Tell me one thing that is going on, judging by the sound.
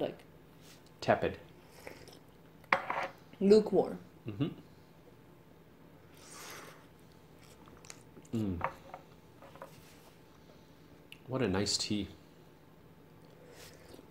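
A woman slurps tea loudly.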